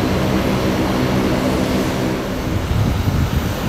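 A propeller aircraft engine hums steadily nearby.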